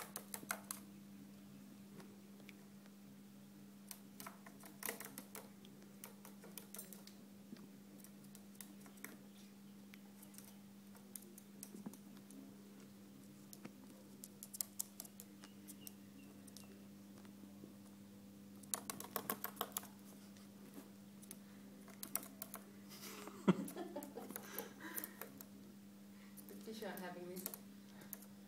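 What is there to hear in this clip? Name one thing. A parrot's claws tap and click on a hard tabletop.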